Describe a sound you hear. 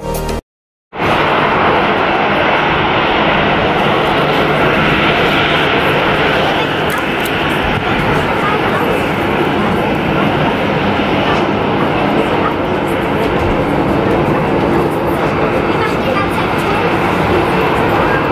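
A jet airliner's engines roar steadily as it taxis close by.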